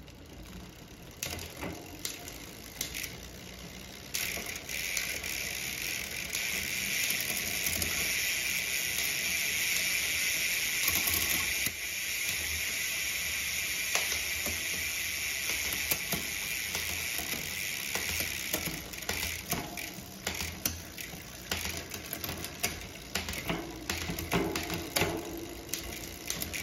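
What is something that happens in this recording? A bicycle freewheel ticks and clicks as the rear wheel spins.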